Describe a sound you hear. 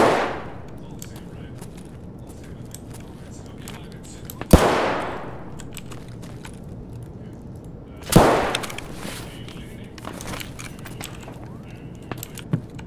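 Footsteps scuff and crunch on a hard, gritty floor inside an echoing building.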